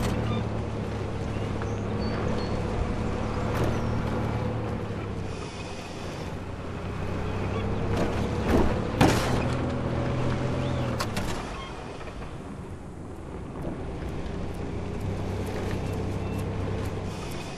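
An off-road buggy's engine hums as it drives in a video game.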